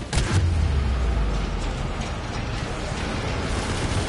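Fire roars and explodes loudly.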